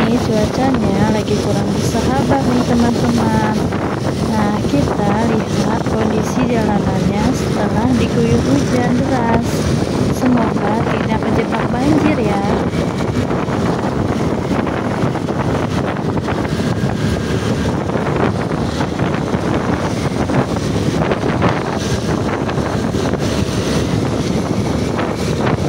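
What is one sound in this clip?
A scooter engine hums steadily.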